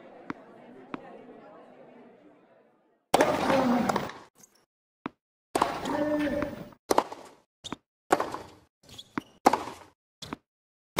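A tennis racket strikes a ball with sharp pops, back and forth.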